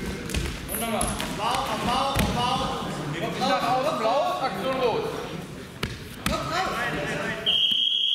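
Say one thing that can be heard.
A man shouts encouragement in an echoing sports hall.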